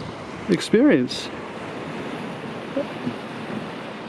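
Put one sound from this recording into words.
Sea waves wash softly onto rocks.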